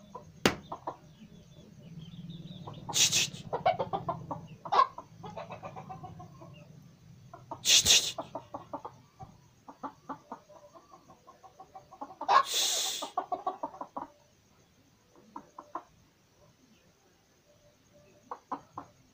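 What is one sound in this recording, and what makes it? Hens cluck softly and repeatedly nearby.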